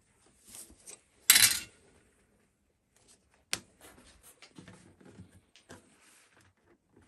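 Plastic crinkles and rustles as hands handle a thin sheet.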